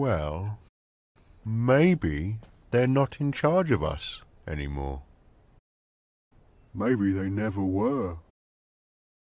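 A man speaks with animation, close to the microphone.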